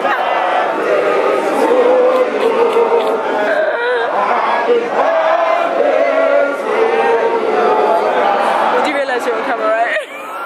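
A young woman sings close by.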